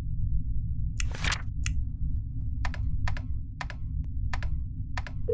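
Keypad buttons give short electronic clicks as they are pressed, one after another.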